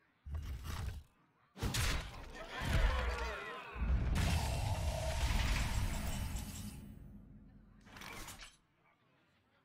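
Game sound effects boom and crash as cards attack and explode.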